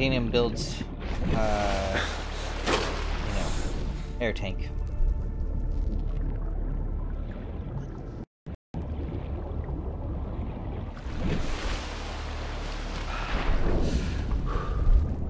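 Water splashes and bubbles as a diver surfaces and dives.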